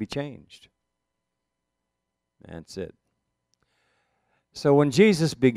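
An elderly man speaks calmly and expressively, close by, in short phrases with pauses.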